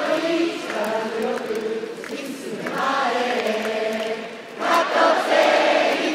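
A large crowd chants and sings together in a big echoing stadium.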